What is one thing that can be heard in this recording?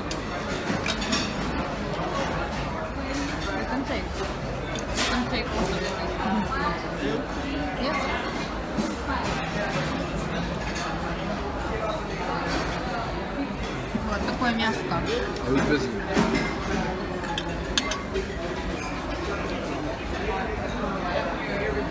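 Cutlery clinks and scrapes on a plate.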